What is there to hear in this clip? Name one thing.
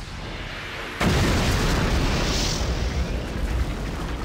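A loud magical blast bursts and rumbles.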